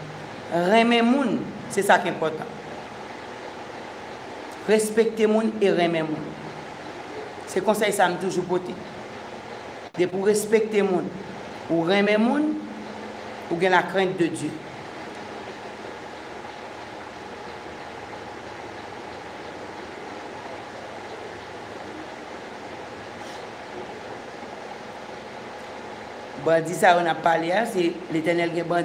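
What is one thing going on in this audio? A woman speaks slowly and calmly into a nearby microphone, with long pauses.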